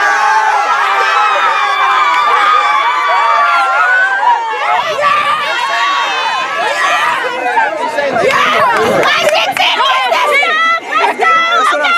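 A crowd of young girls and women shriek, cheer and sing loudly outdoors.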